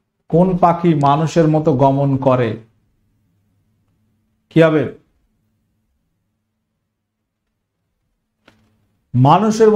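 A young man speaks with animation into a microphone, in short bursts.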